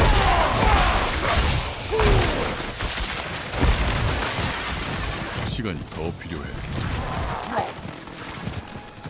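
Loud magic blasts and explosions boom and crackle in rapid bursts.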